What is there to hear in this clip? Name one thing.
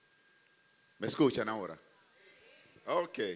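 A man speaks into a microphone, heard through loudspeakers in a large room.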